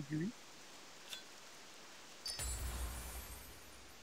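A soft game menu chime sounds.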